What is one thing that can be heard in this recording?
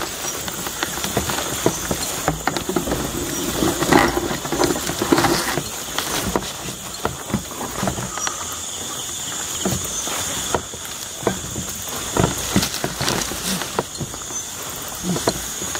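Leaves and stalks rustle as people push through dense plants.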